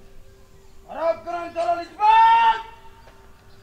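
A young man shouts a loud marching command outdoors.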